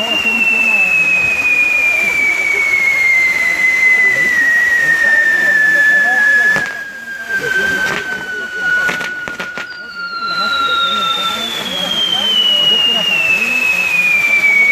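Firework sparks crackle and fizz.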